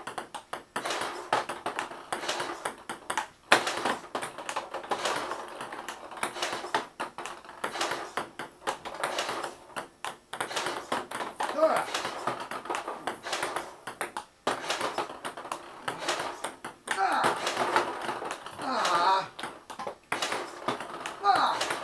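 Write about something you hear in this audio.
A ping-pong ball clicks back and forth on a table and paddle.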